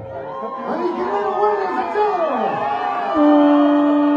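A crowd of men shouts and chants loudly close by.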